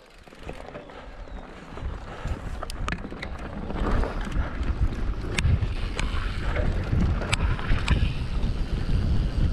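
Bicycle tyres rattle and crunch over a rough grassy track.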